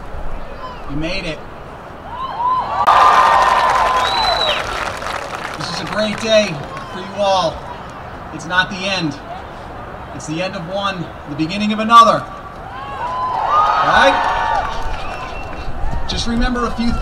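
A young man speaks calmly into a microphone over loudspeakers outdoors.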